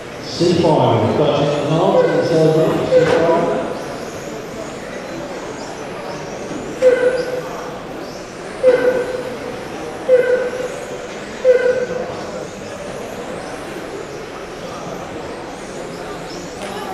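Small electric model cars whine as they race around a track in a large echoing hall.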